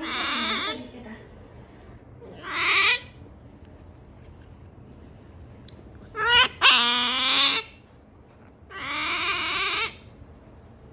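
An otter lets out high-pitched squeaking calls in short bursts.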